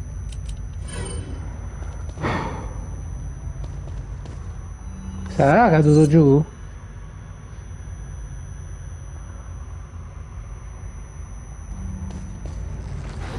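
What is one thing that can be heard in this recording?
Footsteps crunch on gravelly ground.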